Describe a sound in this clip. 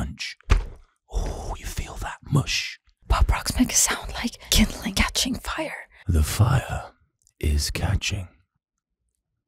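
A man speaks softly, very close to a microphone.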